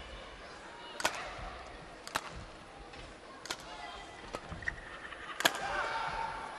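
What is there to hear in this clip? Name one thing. A shuttlecock is struck sharply with a racket, back and forth.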